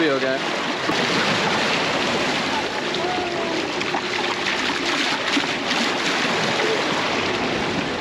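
Seawater sloshes and splashes in a bucket.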